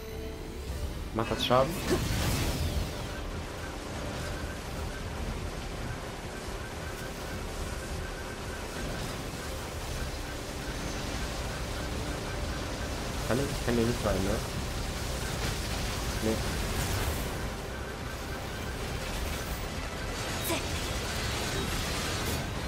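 Blades clash and swish in quick strikes.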